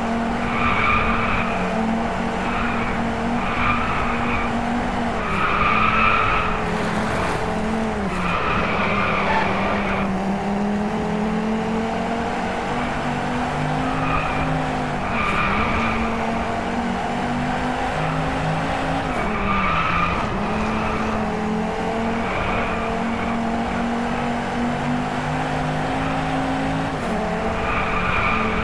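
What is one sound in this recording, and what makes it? A five-cylinder sports car engine runs at high revs and shifts gears.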